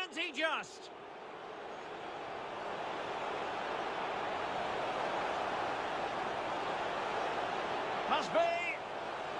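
A large stadium crowd roars and swells steadily louder.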